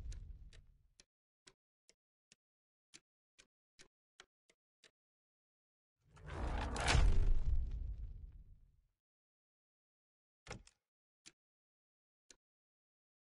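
Soft menu clicks tick as a selection moves from item to item.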